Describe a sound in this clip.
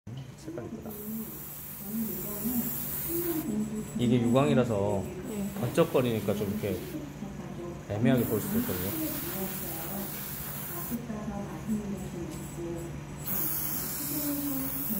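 An airbrush hisses in short bursts of spray.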